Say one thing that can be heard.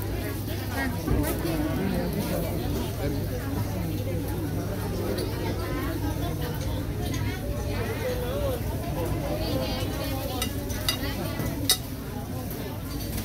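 A crowd of people chatter nearby, outdoors.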